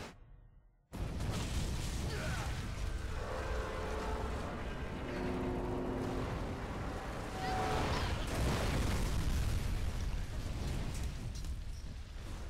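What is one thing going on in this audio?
Fire roars and rumbles after an explosion.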